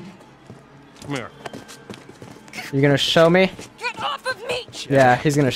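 A woman cries out in distress.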